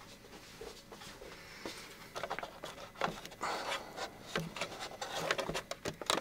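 Clothing rustles and brushes close by.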